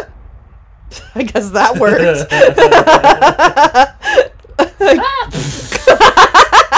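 A man laughs loudly and excitedly close to a microphone.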